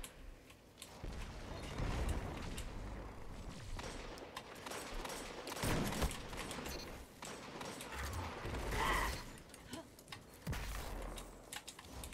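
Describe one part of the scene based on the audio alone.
Gunshots and blasts boom loudly with a short echo.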